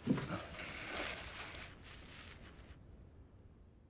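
A woman sniffles into a tissue.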